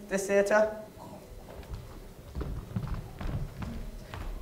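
Footsteps tap on a wooden stage.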